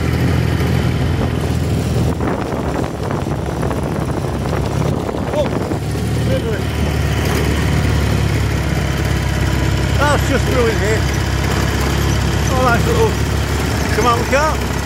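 A vehicle's engine rumbles while driving over a grass field.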